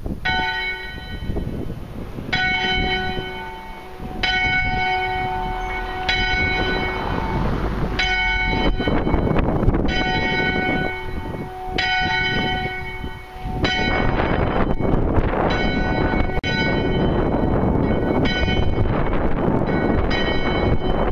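Church bells ring out loudly, outdoors, with a long echoing ring after each stroke.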